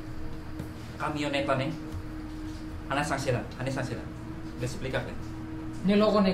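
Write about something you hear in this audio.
A man asks questions calmly nearby.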